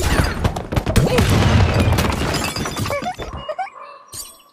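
Wooden and glass blocks clatter and crash as they fall.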